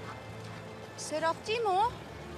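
A woman speaks sharply from inside a car.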